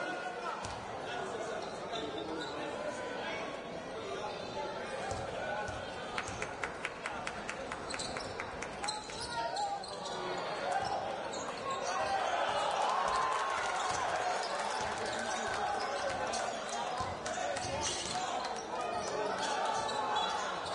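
A crowd murmurs and cheers throughout a large echoing hall.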